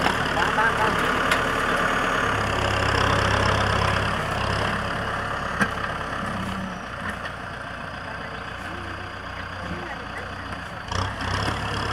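A tractor engine rumbles steadily close by, fading slightly as it moves away.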